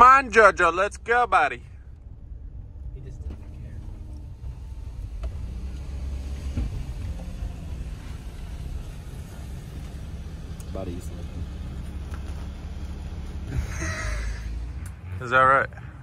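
A vehicle engine rumbles low and steady from inside the cab.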